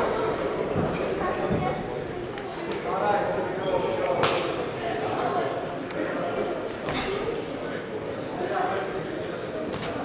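A crowd of spectators murmurs and shouts in a large echoing hall.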